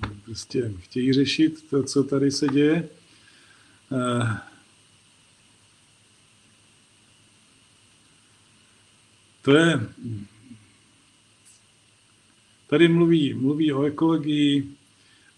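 An older man speaks calmly, with pauses.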